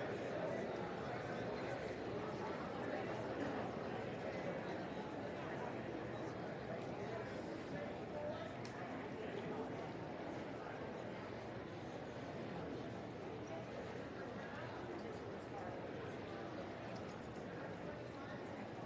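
The murmur of a large indoor crowd fills an echoing hall.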